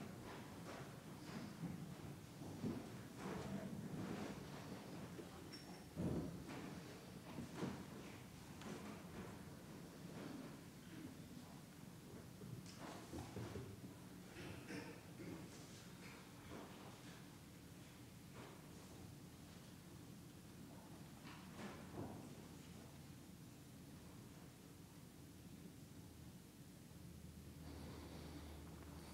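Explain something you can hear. A man speaks calmly and slowly through a microphone in a large echoing hall.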